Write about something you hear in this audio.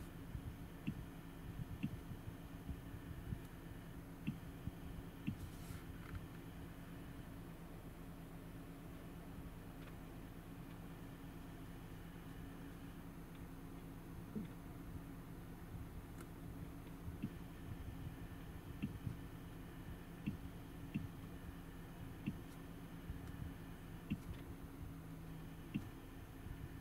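A touchscreen gives a short click with each tap.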